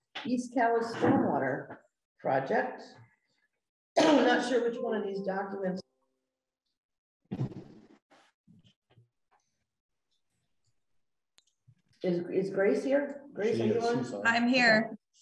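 Adults talk calmly in turn, heard through a microphone in a quiet room.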